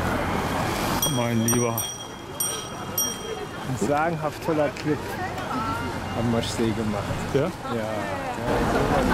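A man speaks nearby outdoors.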